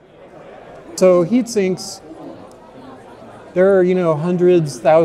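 A middle-aged man speaks calmly into a clip-on microphone, close by.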